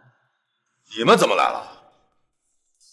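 A man speaks with animation close by.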